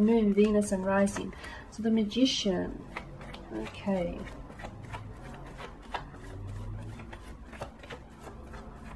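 Playing cards riffle and snap as a deck is shuffled by hand.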